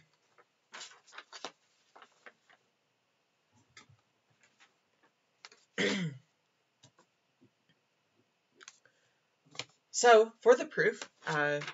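Paper rustles and crinkles as a sheet is handled and turned over.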